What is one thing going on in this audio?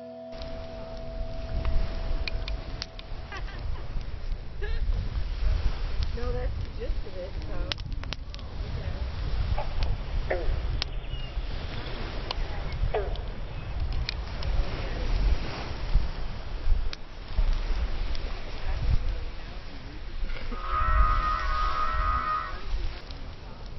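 A fire crackles and roars outdoors.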